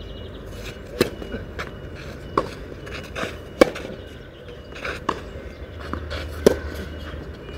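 Tennis balls are struck back and forth with sharp pops.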